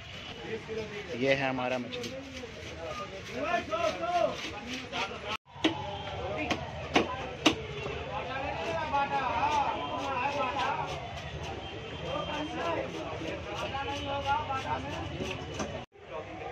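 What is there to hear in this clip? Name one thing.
A knife chops and scrapes through fish.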